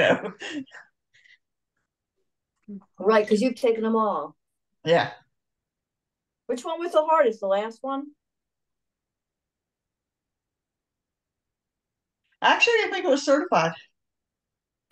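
A woman talks in short bursts over an online call.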